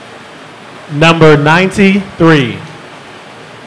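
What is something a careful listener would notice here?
A man speaks briefly into a microphone, loud and close, heard through a loudspeaker in a large room.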